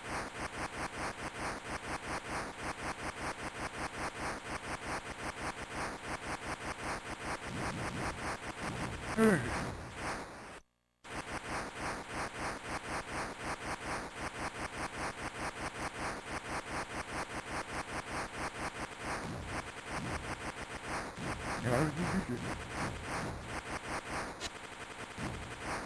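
Rapid electronic zapping shots fire in a quick, steady rhythm from an arcade game.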